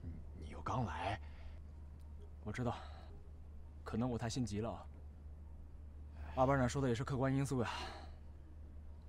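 Two young men talk quietly.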